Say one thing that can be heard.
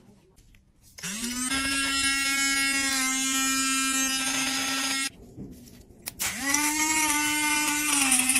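A small handheld vacuum whirs with a high, steady whine.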